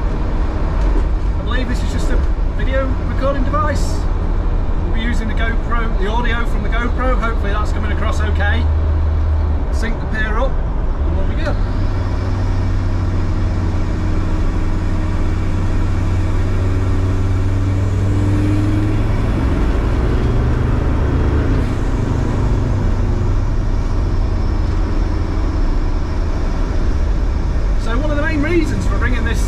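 Tyres hum on the road surface.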